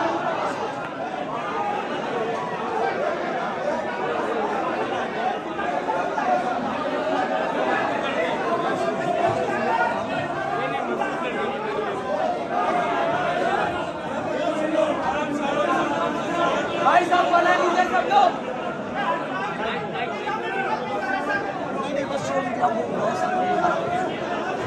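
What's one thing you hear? Men clap and beat their chests.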